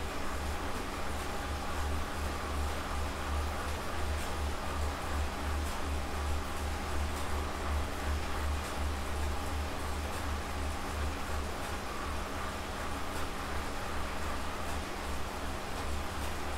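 An indoor bike trainer hums and pulses steadily with each pedal stroke.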